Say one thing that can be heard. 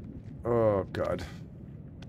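Boots step on a wooden floor.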